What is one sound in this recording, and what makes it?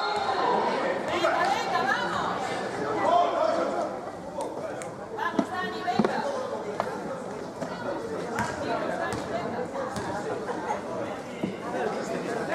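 Several young men shout and call out in a large echoing hall.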